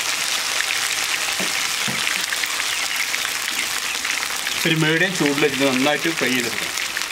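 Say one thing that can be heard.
Oil sizzles and bubbles steadily in a hot pan.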